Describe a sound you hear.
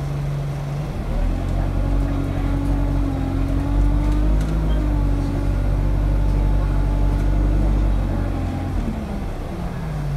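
A bus engine revs up loudly as the bus pulls away, then settles.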